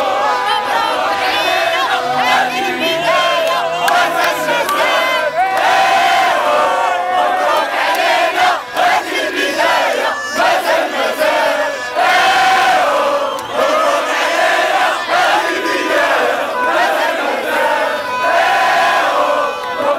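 A large crowd of young men and women chants and sings loudly outdoors.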